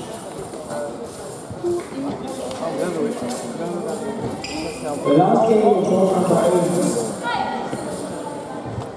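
Men and women talk at once nearby, their voices echoing in a large hall.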